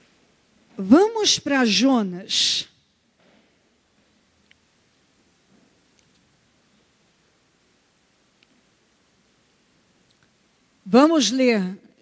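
A woman speaks with feeling into a microphone, in short bursts with long pauses.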